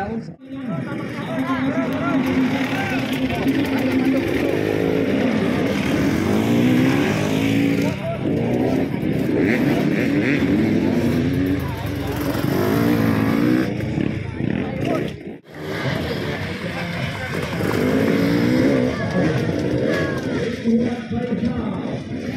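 A dirt bike accelerates over rough ground with a rising engine whine.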